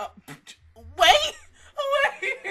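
A young woman laughs, close to a microphone.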